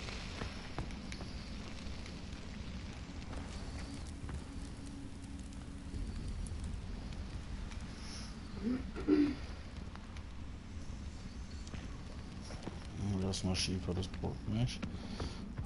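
A torch flame crackles and hisses close by.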